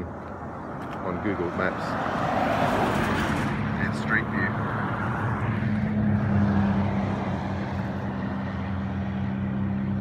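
A car drives past on a nearby road.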